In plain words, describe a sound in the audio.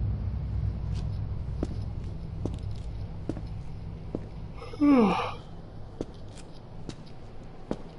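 Rain patters on wet pavement.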